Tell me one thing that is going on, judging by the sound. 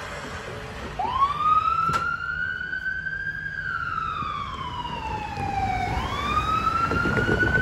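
An ambulance siren wails, slowly rising and falling.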